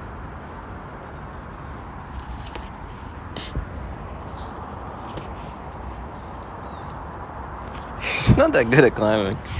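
A squirrel's claws scratch on tree bark.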